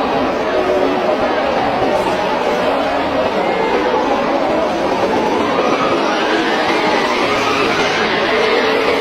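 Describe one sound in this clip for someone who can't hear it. Strong wind howls and roars outdoors.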